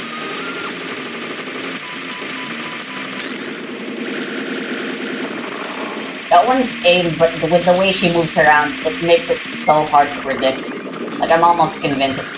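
Upbeat electronic game music plays.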